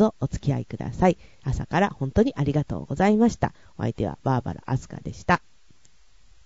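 A young woman speaks with animation, close into a microphone.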